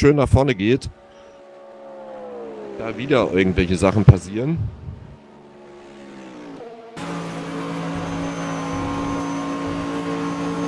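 Racing car engines roar.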